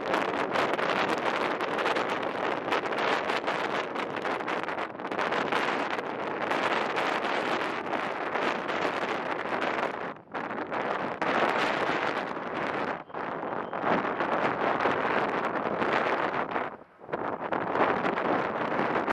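A jet airliner roars overhead as it climbs after takeoff.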